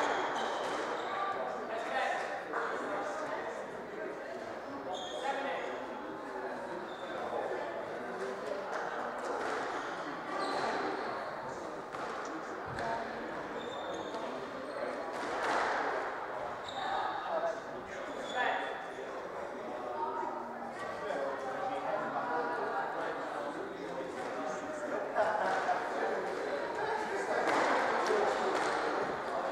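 A squash ball smacks sharply against the walls in a fast rally, echoing in a large hall.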